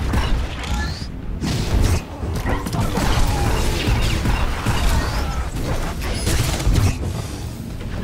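Fiery blasts boom and crackle.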